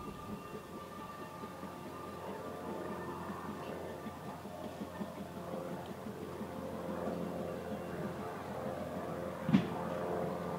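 A steam locomotive's wheels clank on the rails.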